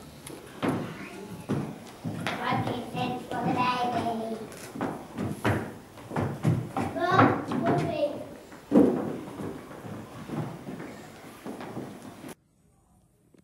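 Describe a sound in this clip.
Young children sing together in an echoing hall.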